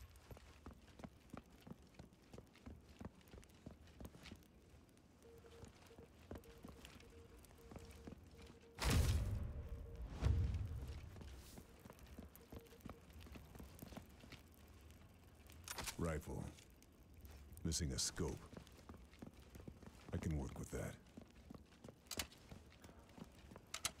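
Footsteps tread across a wooden floor.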